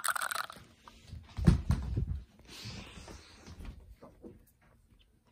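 Bare feet thud softly across a wooden floor.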